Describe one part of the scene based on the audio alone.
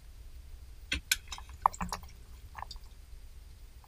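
Metal parts click and clink under a car.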